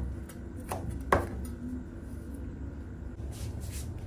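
A knife chops on a cutting board.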